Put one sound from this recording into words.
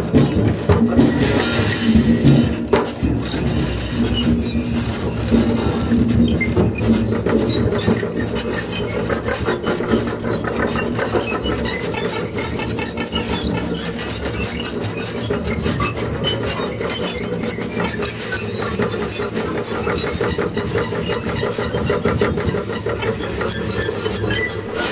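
Electronic music plays loudly from synthesizers.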